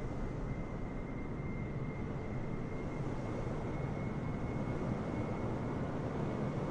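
Jet engines roar steadily as an airliner comes in low to land.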